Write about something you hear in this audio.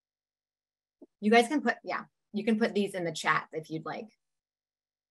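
A young woman speaks calmly over an online call.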